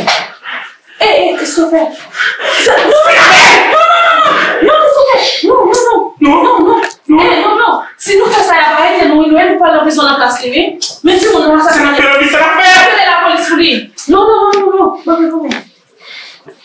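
A woman shouts angrily and with force.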